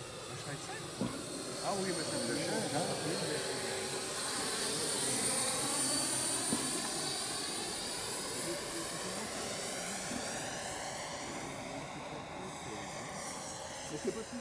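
An electric ducted-fan model jet whines as it flies past, its pitch sliding as it passes.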